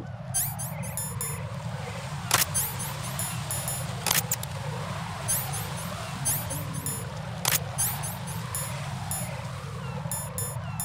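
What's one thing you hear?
Short electronic beeps chime rapidly in bursts.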